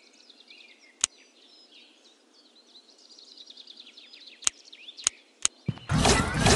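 Menu clicks sound sharply now and then.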